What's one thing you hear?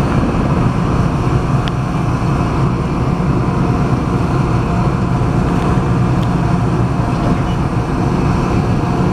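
A passenger train rumbles steadily past close by.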